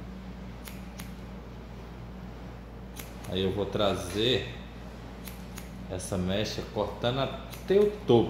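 Scissors snip hair close by with quick crisp clicks.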